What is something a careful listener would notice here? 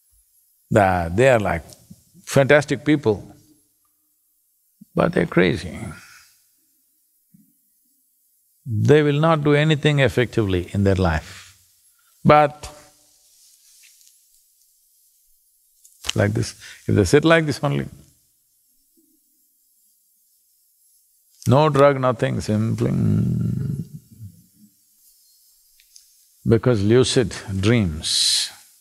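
An elderly man speaks calmly and thoughtfully into a close microphone, pausing often.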